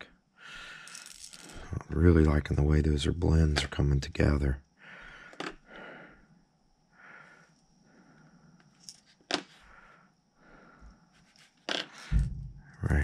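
A plastic lure clicks and rattles as it is handled.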